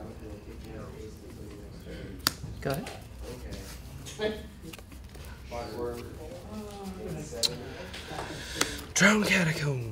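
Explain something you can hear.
Playing cards are shuffled and tapped on a table.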